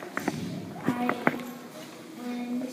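A child's footsteps patter across a wooden floor.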